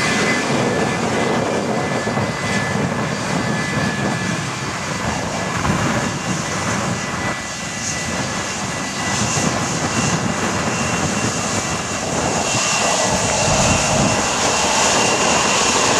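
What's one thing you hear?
A jet airliner's engines roar loudly as it rolls along a runway.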